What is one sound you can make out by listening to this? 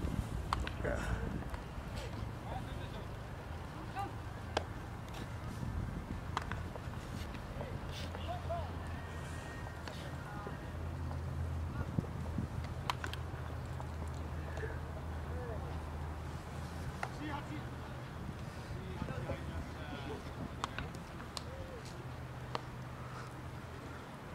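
Young men call out to each other at a distance across an open field.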